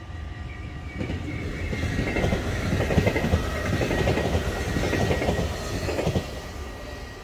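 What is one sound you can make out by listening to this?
A train rushes past close by with a loud roar of wheels on rails.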